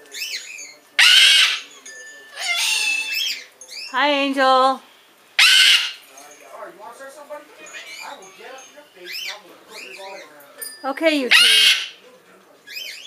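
A cockatoo screeches loudly and chatters up close.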